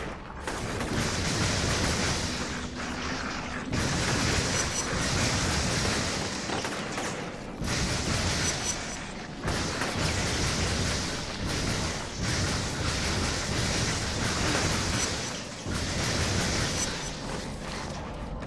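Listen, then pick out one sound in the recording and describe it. Energy blasts crackle and roar in a game.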